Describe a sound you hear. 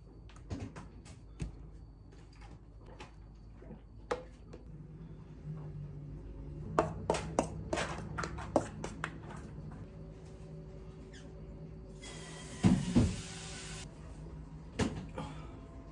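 A spoon scrapes and taps against a glass container.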